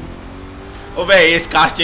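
A man speaks loudly into a close microphone.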